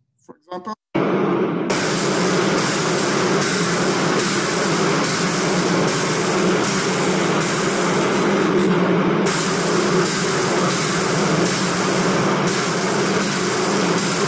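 A large fire roars loudly.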